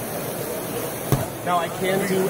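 A metal grill lid clanks shut.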